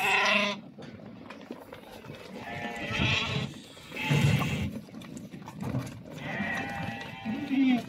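Hooves patter and shuffle on dry ground.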